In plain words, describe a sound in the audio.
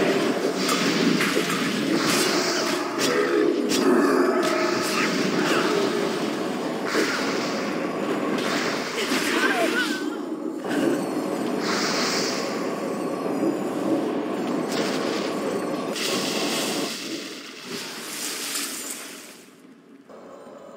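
Spells and weapons clash and crackle in a busy fight.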